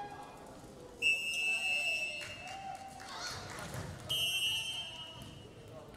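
A referee's whistle blows sharply in an echoing gym.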